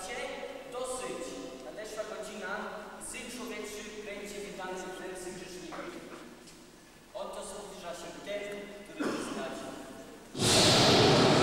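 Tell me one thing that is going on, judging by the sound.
A young man sings on stage, heard from a distance in a large echoing hall.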